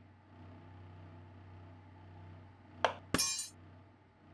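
A knife chops once on a wooden cutting board.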